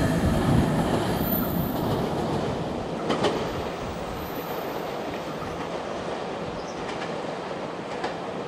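A second train approaches slowly with a low hum.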